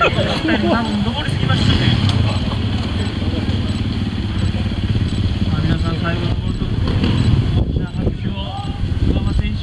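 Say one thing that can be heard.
A motorcycle engine revs and growls as it climbs.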